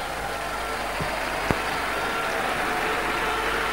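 A table tennis ball clicks off a paddle and the table.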